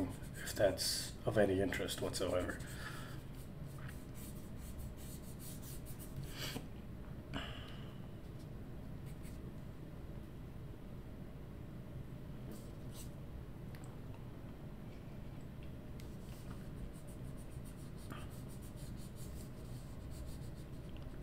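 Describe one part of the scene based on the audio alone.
A pencil scratches and rubs softly on paper.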